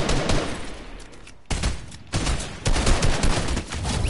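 A gun fires in sharp bursts.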